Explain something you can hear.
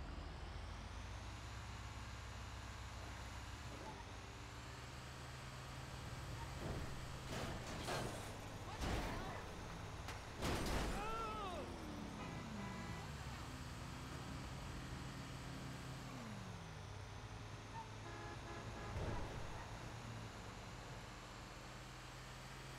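A heavy truck engine rumbles steadily as it drives along.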